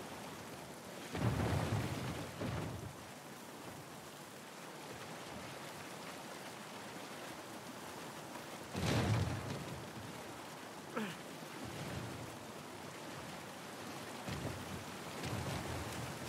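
Water rushes and splashes steadily nearby.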